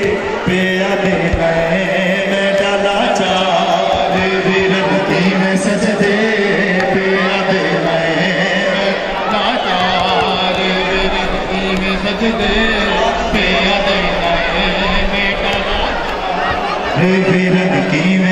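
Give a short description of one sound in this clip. A large crowd of men chants together outdoors.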